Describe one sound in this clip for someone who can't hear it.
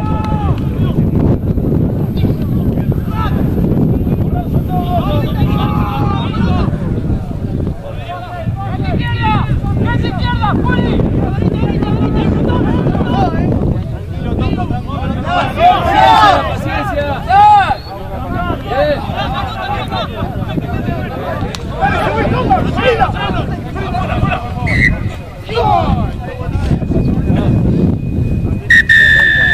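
Young men shout to each other across the field.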